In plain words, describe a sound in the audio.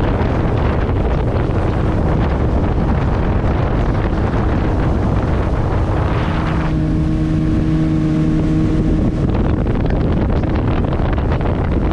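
Water rushes and splashes against a boat's hull.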